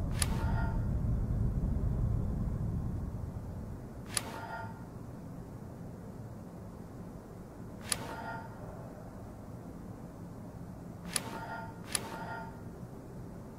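A bright chime rings out several times.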